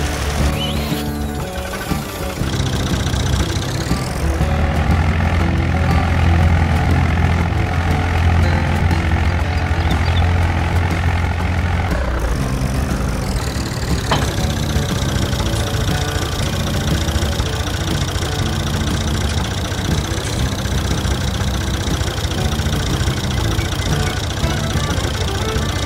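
A tractor engine rumbles steadily.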